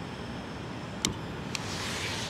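A stove igniter clicks.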